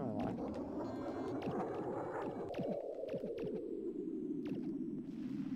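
Laser shots fire in quick bursts with sharp downward zaps.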